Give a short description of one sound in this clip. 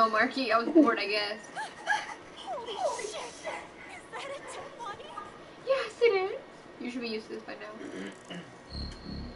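A young woman talks animatedly into a microphone.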